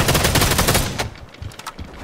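Gunfire blasts loudly in rapid bursts.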